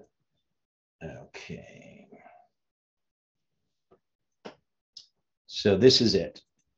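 An older man speaks calmly and haltingly, close to a microphone.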